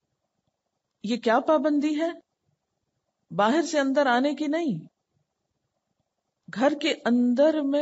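A woman speaks calmly into a microphone in short phrases.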